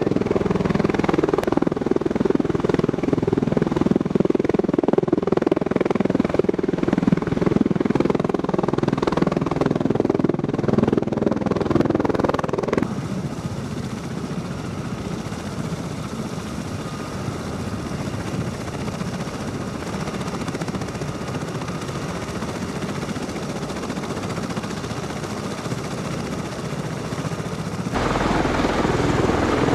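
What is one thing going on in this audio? An aircraft's rotors roar loudly overhead.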